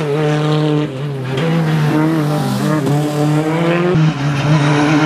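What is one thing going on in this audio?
A turbocharged four-cylinder rally car races past at full throttle, shifting gears.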